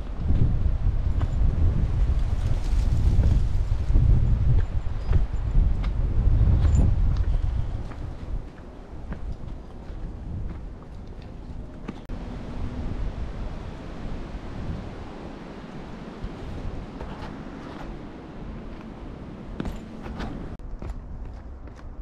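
Footsteps crunch on rocky ground and dry leaves.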